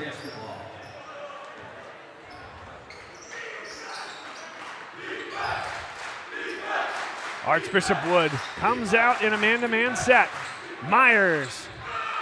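A large crowd murmurs and cheers in an echoing gym.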